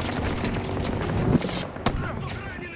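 An explosion booms close by.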